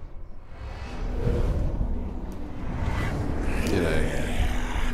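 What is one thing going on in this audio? A monster roars fiercely.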